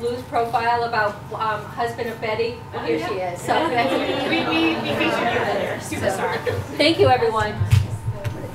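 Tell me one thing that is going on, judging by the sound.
A woman speaks with animation, close by.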